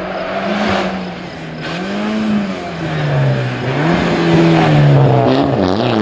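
Tyres squeal on asphalt as a car slides through corners.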